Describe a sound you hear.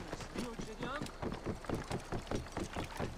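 Hooves thud on wooden planks.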